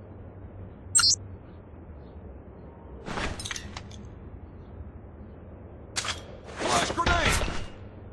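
A knife blade scrapes and swishes.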